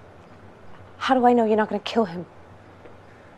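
A young woman asks a tense question nearby.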